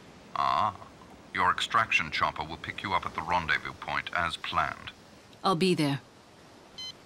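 A young woman speaks quietly and calmly.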